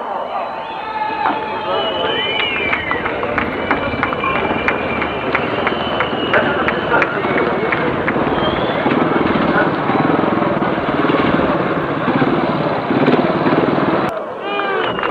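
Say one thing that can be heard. Motorcycle engines rev as bikes ride slowly on a dirt track.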